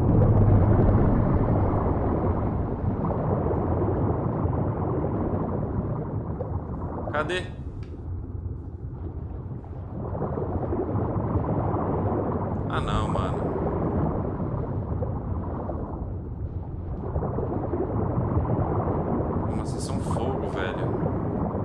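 Water rushes past a large creature swimming underwater.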